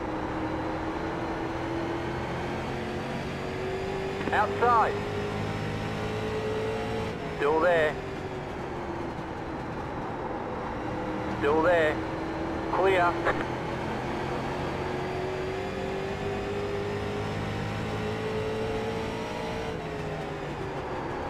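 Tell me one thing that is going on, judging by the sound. A race car engine drones steadily, rising and falling in pitch.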